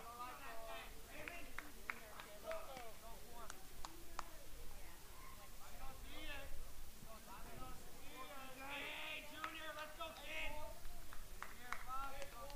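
Young men call out and chatter across an open field.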